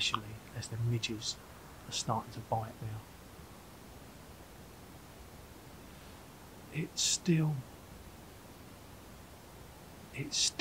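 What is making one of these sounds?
A middle-aged man speaks calmly and close by, with pauses.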